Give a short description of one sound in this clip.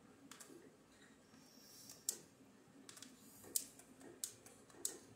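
Sharp clicking game sound effects play from a television speaker.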